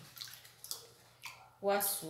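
Liquid pours from a bottle into a tub.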